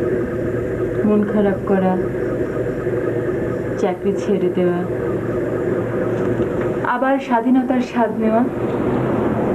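A young woman speaks softly and calmly nearby.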